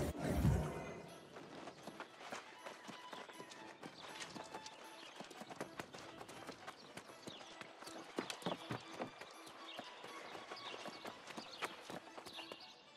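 Footsteps run quickly over stone.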